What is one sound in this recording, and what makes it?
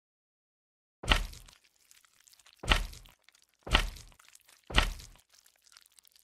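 Blocks thud heavily into place several times.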